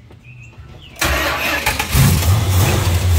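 A car engine starts up with a sudden roar.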